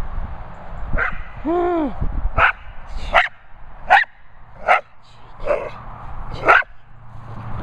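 A dog barks sharply and repeatedly.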